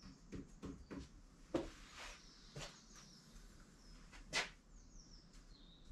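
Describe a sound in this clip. A marker pen scratches and taps against a board in short, quick strokes.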